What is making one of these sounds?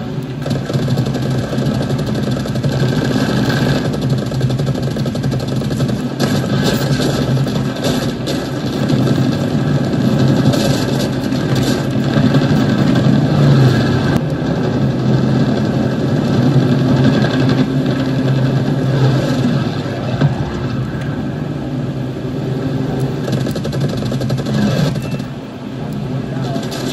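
A propeller plane's engine drones steadily through a loudspeaker.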